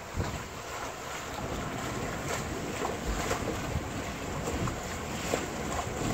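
Water splashes and rushes against a boat's hull.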